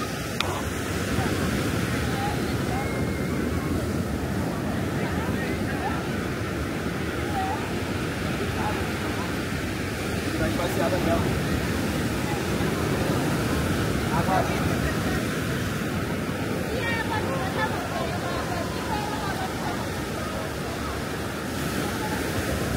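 Waves wash softly onto the shore.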